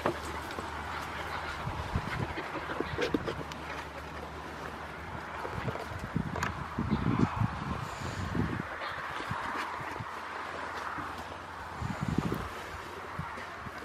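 Dogs' paws patter on dirt and grass.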